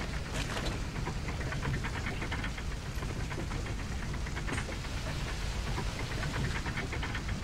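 Flames roar and crackle in rapid bursts.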